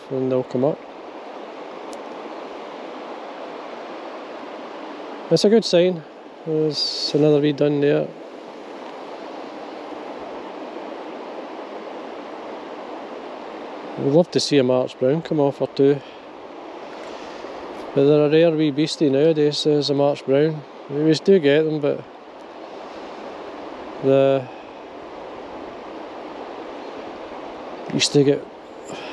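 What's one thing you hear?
A river rushes and ripples over stones.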